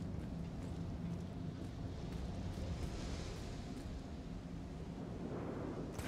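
Wind blows steadily across an open outdoor expanse.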